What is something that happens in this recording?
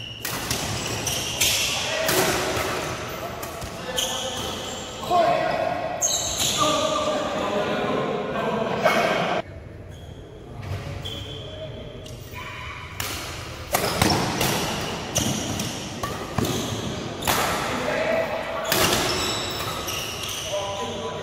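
Shuttlecocks are struck by rackets with sharp pops in a large echoing hall.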